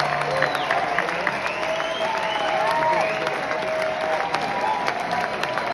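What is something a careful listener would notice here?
A live band plays music through loudspeakers in a large echoing hall.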